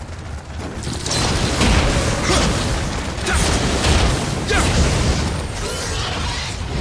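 Heavy sword blows clash and crash in a fierce fight.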